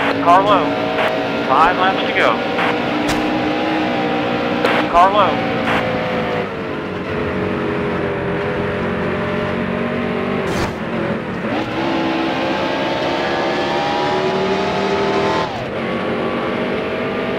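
A race car engine roars steadily, rising and falling in pitch as it shifts gears.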